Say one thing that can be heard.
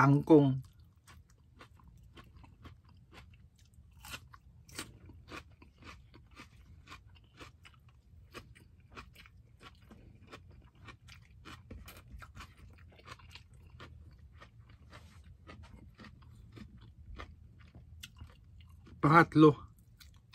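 A man chews food with wet, smacking sounds close by.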